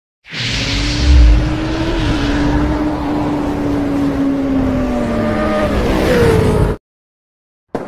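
A motorcycle engine roars loudly.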